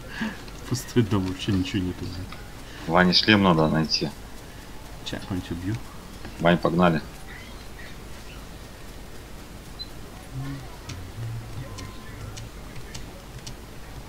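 Footsteps run quickly over grass and rock.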